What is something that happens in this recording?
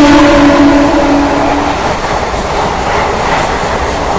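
A train rolls by with a low rumble.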